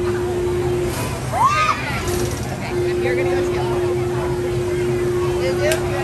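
A ride's machinery hums steadily.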